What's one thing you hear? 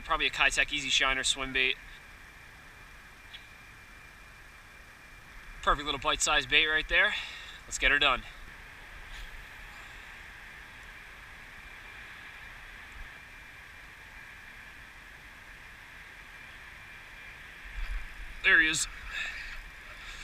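A young man talks casually, close by.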